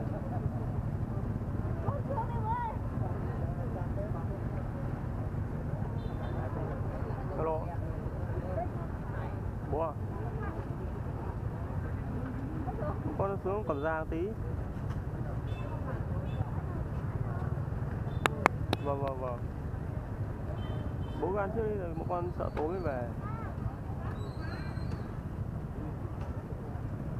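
Many motorbike engines idle and rumble close by.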